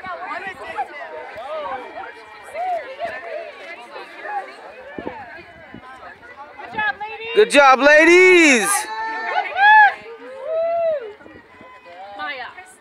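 A group of girls chatter and call out excitedly outdoors.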